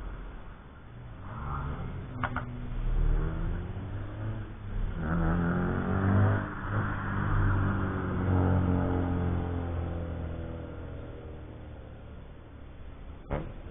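Race car engines roar past close by, rising and falling in pitch.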